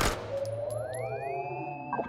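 Small explosions burst.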